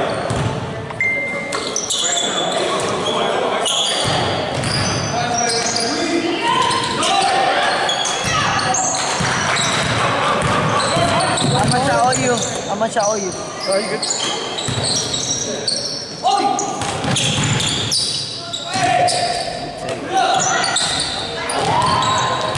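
Young men shout and call out to each other in an echoing gym.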